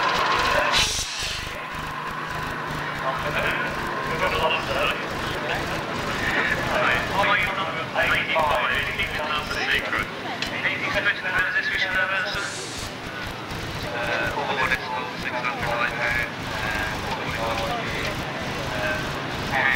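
A crowd murmurs outdoors in the distance.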